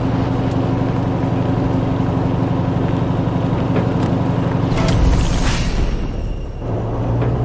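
A vehicle engine rumbles steadily as it drives.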